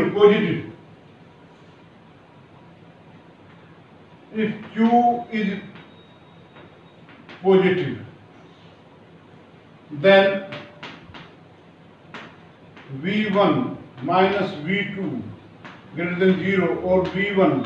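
An elderly man speaks calmly and clearly, as if explaining, close by.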